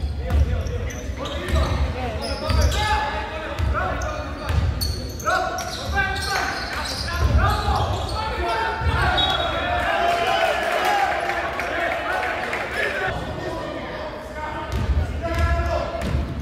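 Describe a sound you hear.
Spectators near the court call out and chatter.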